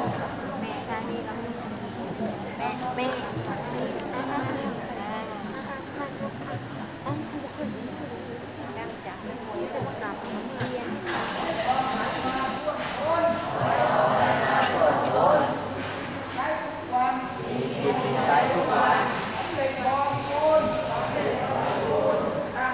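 A crowd of people murmur and chatter in a large echoing hall.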